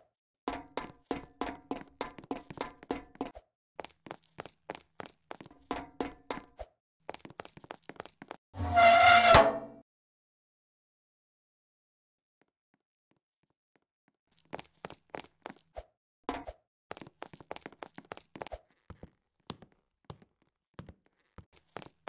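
Quick footsteps clatter on metal grating.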